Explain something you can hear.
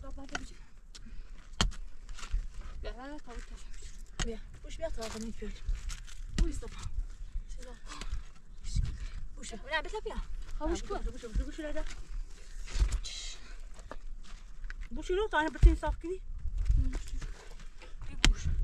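A shovel scrapes and digs into dry earth.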